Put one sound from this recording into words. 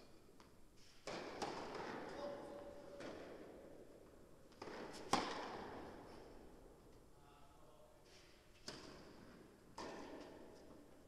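A tennis ball is struck hard with a racket, echoing in a large hall.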